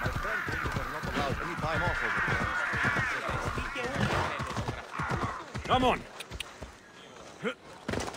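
Horse hooves clop on a stone road at a trot.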